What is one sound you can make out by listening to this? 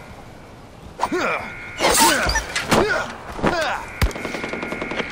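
A dog growls and yelps.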